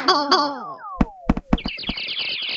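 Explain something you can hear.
A cartoon cat thuds onto the floor.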